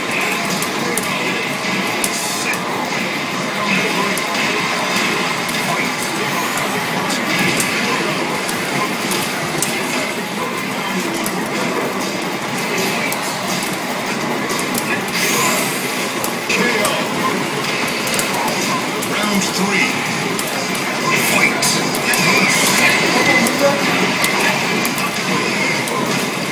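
Punches and kicks from a fighting game thud and smack loudly through arcade speakers.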